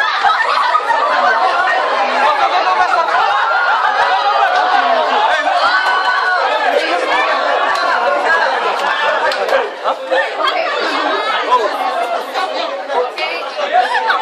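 A crowd of young men and women chatter, laugh and shout excitedly close by in a room.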